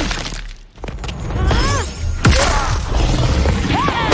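A magic blast whooshes and booms.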